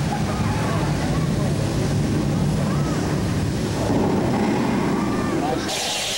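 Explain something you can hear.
A crowd of people chatters and shouts close by.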